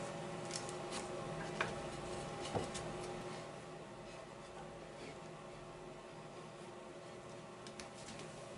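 Thin wooden slats knock and clatter lightly as they are handled.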